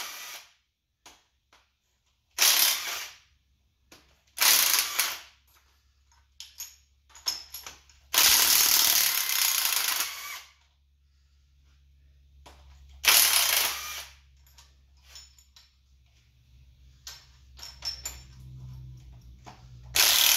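Metal parts clink and rattle.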